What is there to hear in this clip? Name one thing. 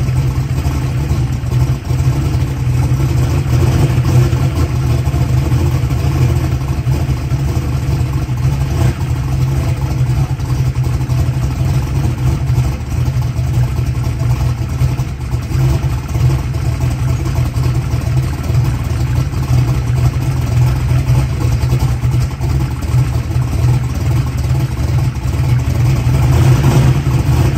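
A large engine idles loudly with a deep, rough rumble.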